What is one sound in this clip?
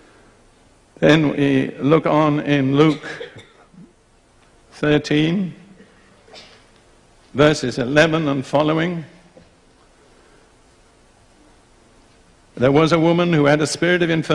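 An elderly man speaks slowly and deliberately through a microphone, with pauses between phrases.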